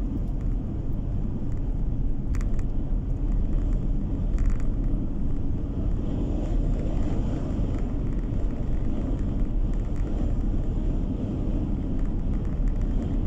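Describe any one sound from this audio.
Tyres roll steadily on the road surface.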